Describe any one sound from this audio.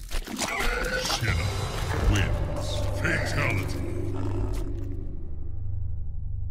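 A monstrous creature growls and snarls.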